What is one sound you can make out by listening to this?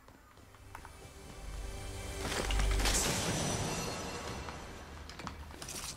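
A treasure chest hums with a shimmering chime, then bursts open.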